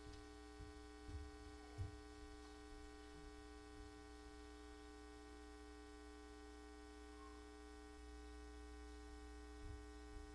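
A microphone knocks and thumps as a woman handles it.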